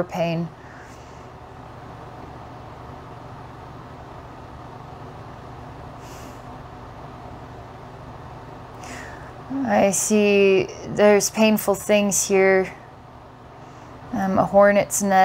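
A woman speaks softly and calmly into a close microphone.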